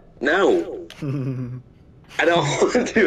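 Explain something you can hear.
A man answers in a low voice nearby.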